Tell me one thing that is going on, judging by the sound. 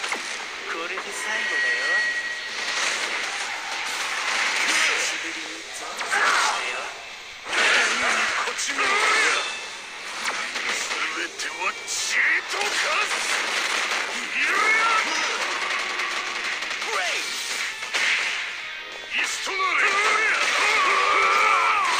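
Punches and energy blasts crash and boom in a fast fight.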